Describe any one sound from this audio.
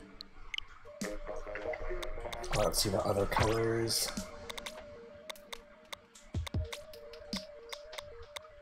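Upbeat electronic game music plays.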